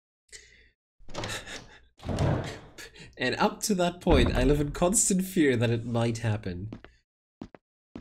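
A young man talks and laughs with animation into a close microphone.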